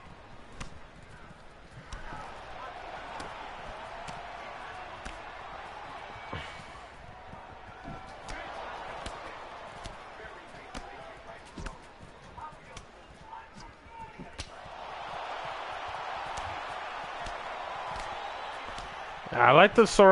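Punches and kicks land with sharp, dull thuds.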